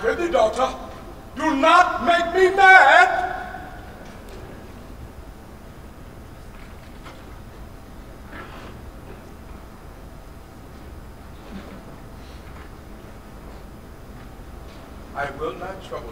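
A man declaims loudly and theatrically in an echoing hall.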